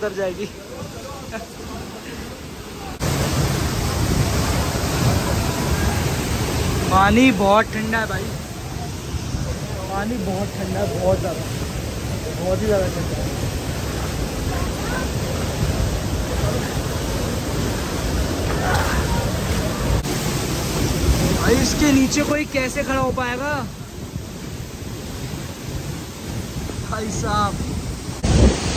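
A waterfall roars steadily close by.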